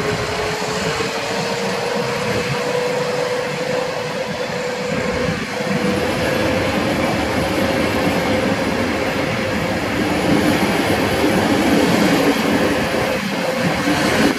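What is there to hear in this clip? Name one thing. A passenger train rumbles past close by on the rails.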